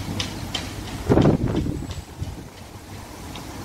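A van engine rumbles as it drives past.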